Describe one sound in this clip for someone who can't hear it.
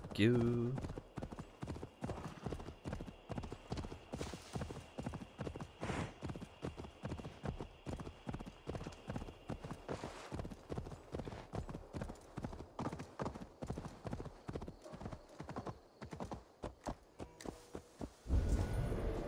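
Horse hooves pound rhythmically at a gallop.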